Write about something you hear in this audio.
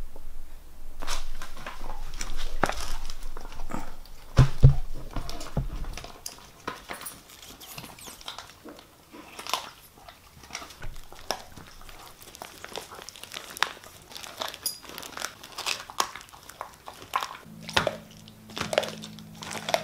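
A plastic bag crinkles and rustles on a hard floor.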